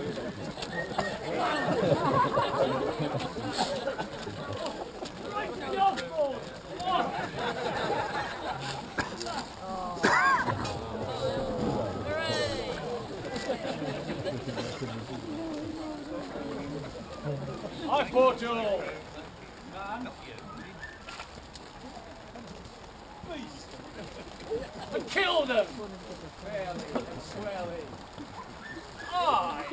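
A man speaks loudly and with animation to a crowd outdoors.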